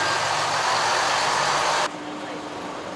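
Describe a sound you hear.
Loud hiss and bustle fill the air.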